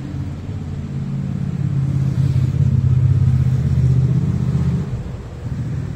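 A car drives past on a street.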